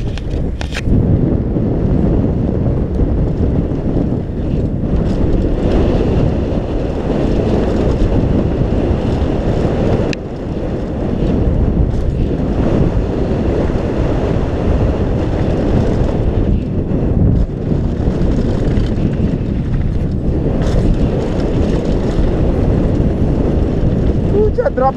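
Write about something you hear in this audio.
Bicycle tyres crunch and rattle over loose gravel and rocks.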